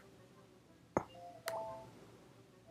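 A short game chime rings as a bonus is collected.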